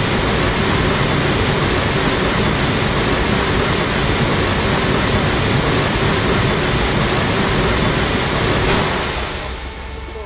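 Water sprays and hisses loudly over a car.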